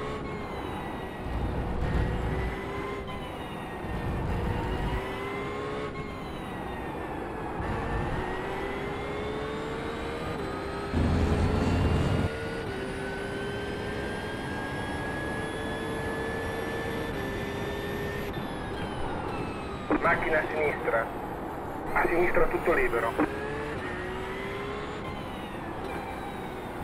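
A racing car engine roars steadily, its pitch climbing and dropping with each gear change.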